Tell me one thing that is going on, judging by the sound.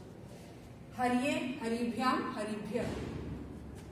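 A woman speaks clearly to the listener, close by.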